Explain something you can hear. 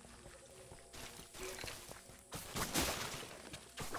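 A game character's weapon swings and hits land in quick bursts.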